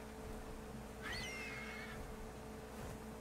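A large reptile growls.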